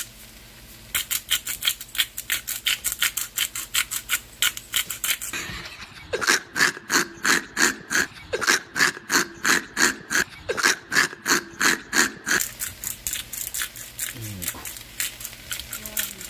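A spice shaker rattles in quick, even shakes.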